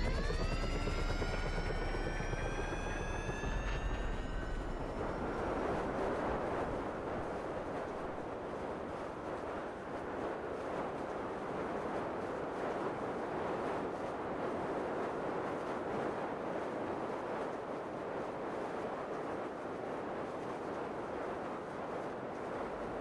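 Wind rushes loudly past a skydiver in free fall.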